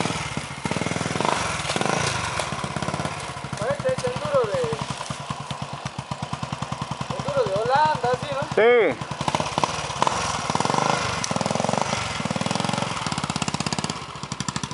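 A dirt bike engine idles and revs up and down close by.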